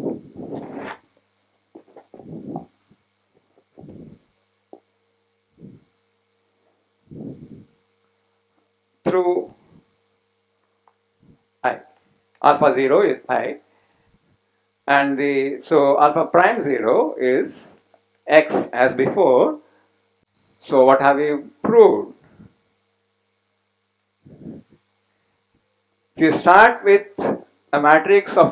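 An elderly man lectures calmly, pausing often.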